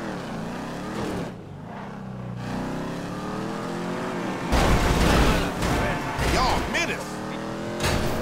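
A car engine revs and roars, shifting gears as it speeds up.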